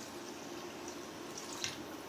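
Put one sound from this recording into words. Liquid pours into a pot.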